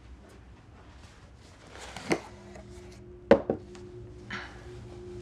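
Bedding rustles as pillows are moved about.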